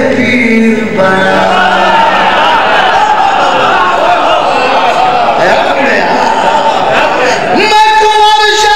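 A group of men chant along together.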